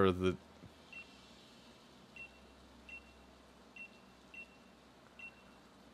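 Soft short game beeps chime at intervals.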